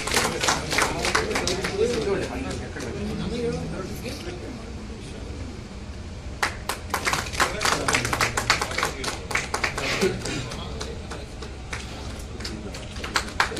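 People clap their hands in scattered applause.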